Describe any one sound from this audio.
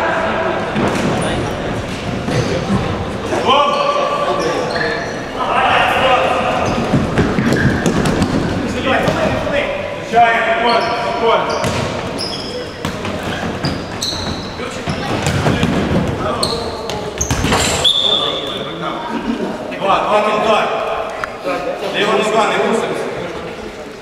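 Players' shoes squeak and patter on a hard indoor court in a large echoing hall.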